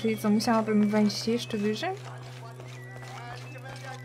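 Footsteps tap on stone steps.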